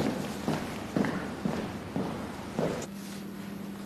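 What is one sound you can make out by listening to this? A woman's footsteps click on a hard floor.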